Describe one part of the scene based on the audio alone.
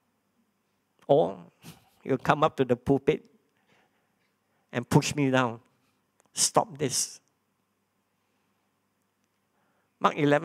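A man preaches in a calm, measured voice through a microphone, with pauses between phrases.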